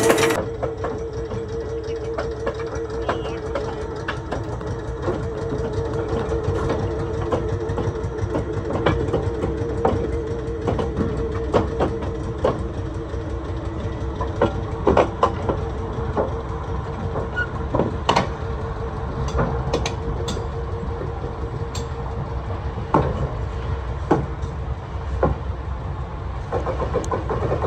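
Train wheels clack over rail joints as the train rolls slowly.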